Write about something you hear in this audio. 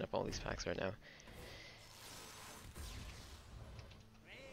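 A magical burst whooshes as a game card pack bursts open.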